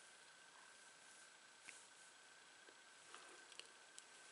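A paintbrush taps softly against a plate.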